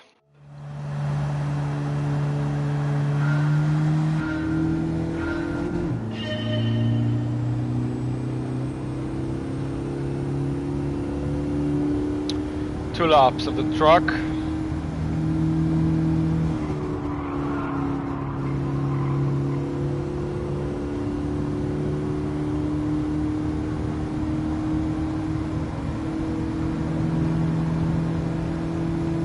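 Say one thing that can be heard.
A car engine hums steadily and revs up through the gears.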